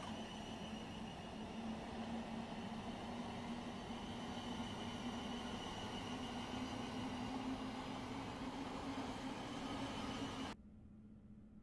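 A passing train rumbles loudly as it pulls away.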